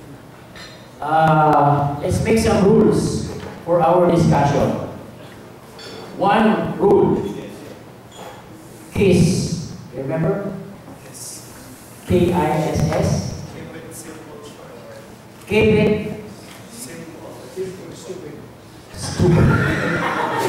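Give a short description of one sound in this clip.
A man speaks through a microphone and loudspeakers in short, emphatic bursts with pauses, in a room with some echo.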